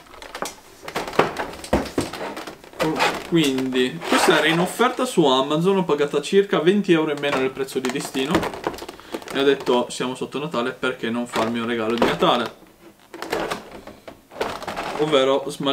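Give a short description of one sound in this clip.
Stiff plastic packaging crackles and clicks in hands.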